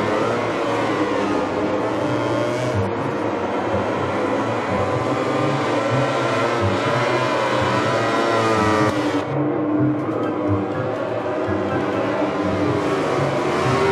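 Racing motorcycle engines scream loudly, revving up and down.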